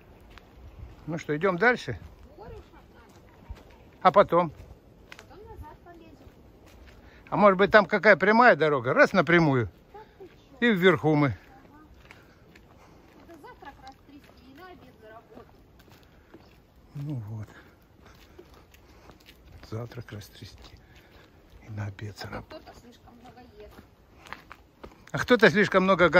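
Footsteps scuff slowly on a rough paved path outdoors.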